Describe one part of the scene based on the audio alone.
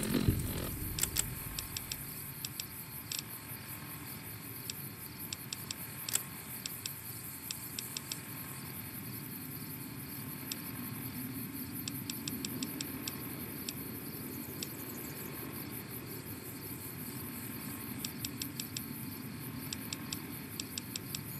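Short electronic clicks tick as a menu is scrolled through.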